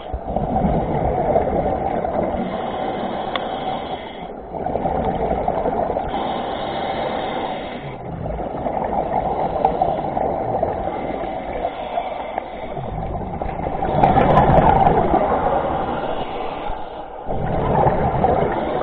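Scuba breathing bubbles up in loud, rushing bursts close by, heard underwater.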